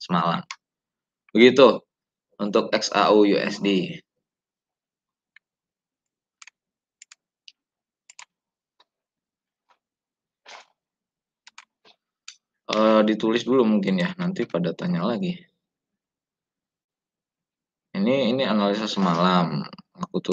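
A young man talks calmly into a microphone, heard as if through an online call.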